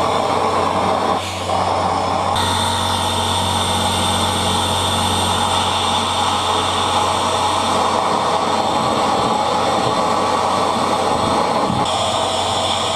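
A gas torch roars loudly and steadily.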